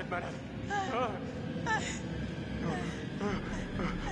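A young woman cries out in fear.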